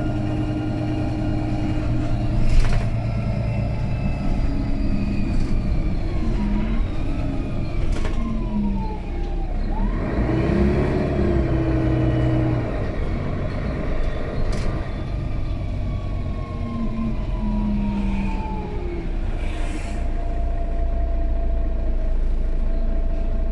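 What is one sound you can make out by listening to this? A bus engine hums and whines steadily as the bus drives along.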